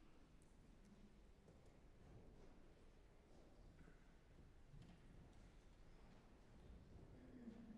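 A piano plays softly in a large echoing hall.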